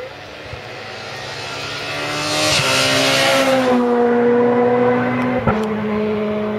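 A rally car races past at speed, its engine note dropping as it goes by.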